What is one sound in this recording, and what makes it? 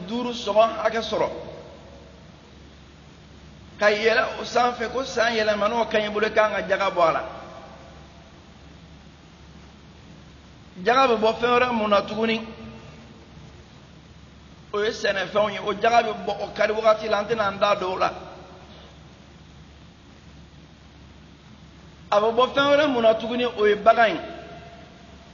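An elderly man preaches forcefully into a microphone in short bursts with long pauses.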